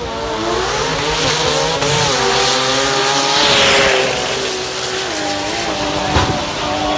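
Race car engines roar loudly as the cars speed down the track.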